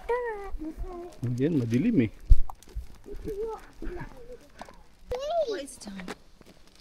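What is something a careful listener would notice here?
A young child talks in a high, animated voice close by.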